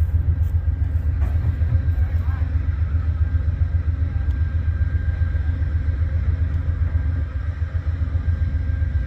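Train wheels squeal and clack on the rails.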